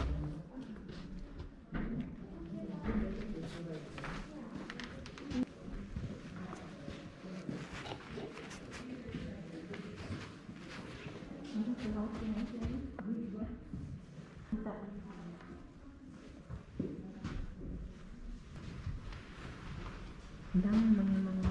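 Adults and children chat quietly nearby in a large echoing room.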